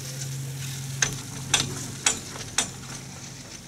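A chairlift's grips clack loudly several times as the chair passes over a tower's pulleys.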